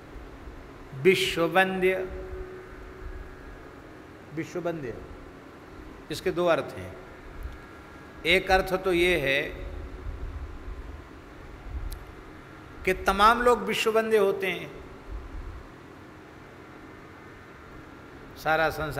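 An older man speaks slowly into a microphone, in short phrases with pauses.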